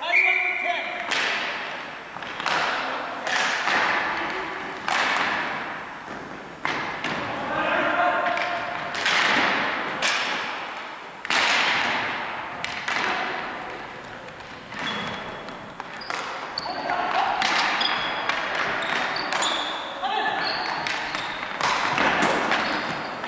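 A ball smacks off hockey sticks, echoing loudly through a large hall.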